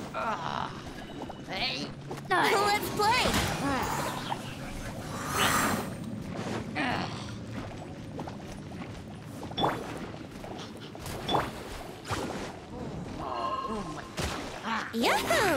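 Game sword slashes whoosh and clang in quick bursts.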